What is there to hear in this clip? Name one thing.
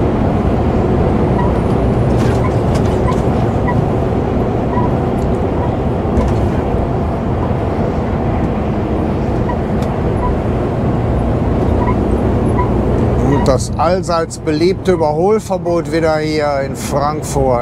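Tyres roar steadily on a motorway.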